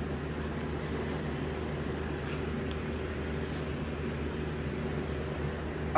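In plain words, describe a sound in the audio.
Sneakers step softly on carpet.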